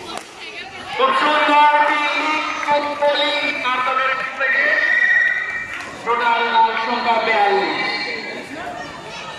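A teenage boy talks loudly and animatedly close by.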